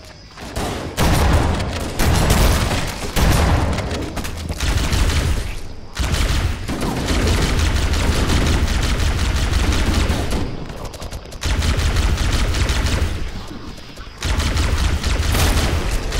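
Guns fire in rapid bursts with heavy booming blasts.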